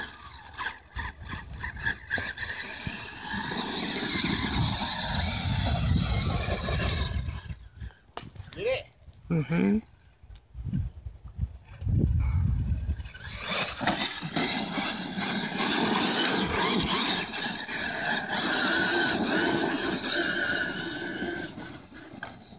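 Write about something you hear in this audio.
An electric radio-controlled monster truck's motor whines as it drives across sand.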